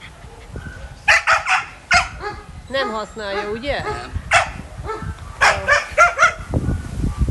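A dog yelps and whines in distress.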